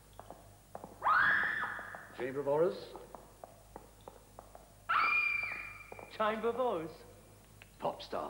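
An older man answers in a deep voice, close by.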